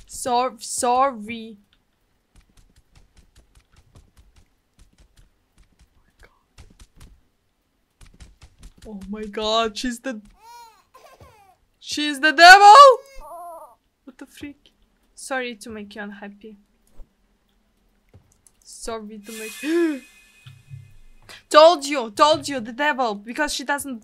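A young woman speaks close to a microphone, with animated exclamations and pauses.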